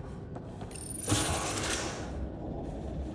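A heavy sliding door opens with a whooshing hiss.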